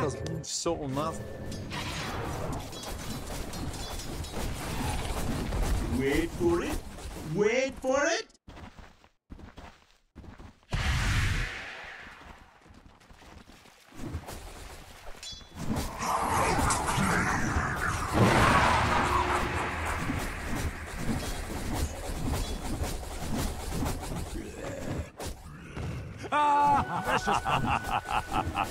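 Clashing and crackling battle effects from a video game play.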